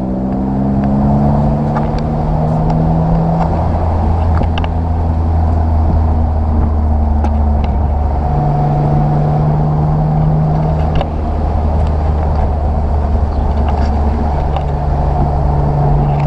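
A straight-six sports car engine accelerates through the gears.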